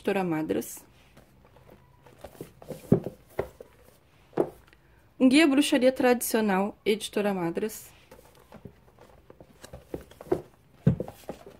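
Books slide and knock against each other on a shelf.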